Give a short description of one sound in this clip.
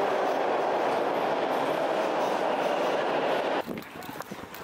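A subway train rushes past with a loud, steady roar.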